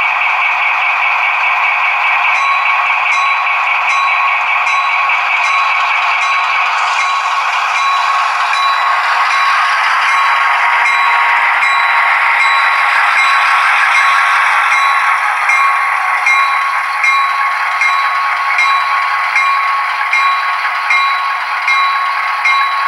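A model train locomotive's electric motor whines steadily as it draws closer.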